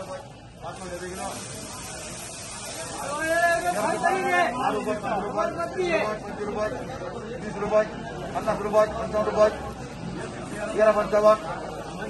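Several men talk loudly over one another nearby.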